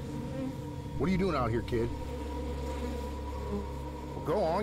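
A man asks a question in a low, calm voice.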